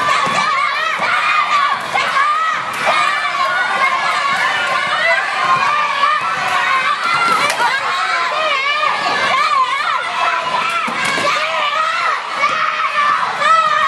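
Sneakers squeak and patter on the floor as children run.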